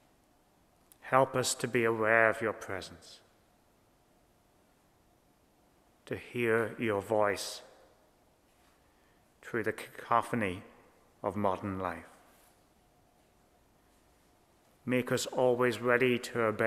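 A man speaks calmly into a microphone in short phrases, with pauses between them.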